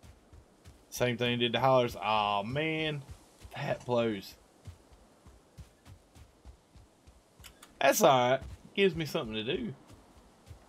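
A middle-aged man talks casually into a close microphone.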